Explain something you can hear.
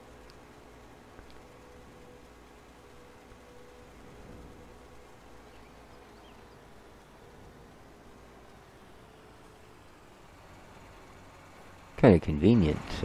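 A tractor engine hums steadily as the tractor drives along.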